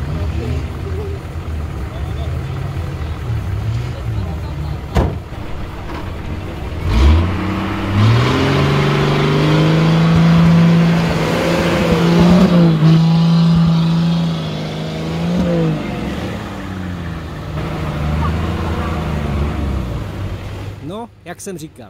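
A truck engine roars and revs loudly, straining in thick mud.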